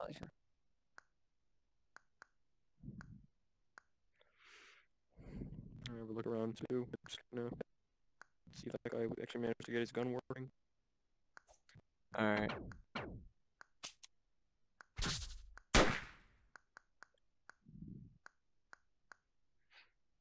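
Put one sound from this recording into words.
Buttons click softly as they are pressed, now and then.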